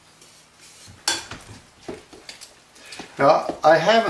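A spoon stirs and clinks in a bowl of chopped vegetables.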